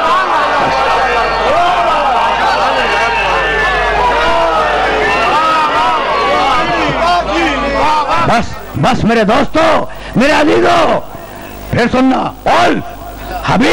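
An elderly man speaks with animation into a microphone, heard through loudspeakers.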